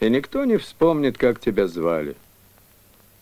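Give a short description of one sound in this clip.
A man speaks close up.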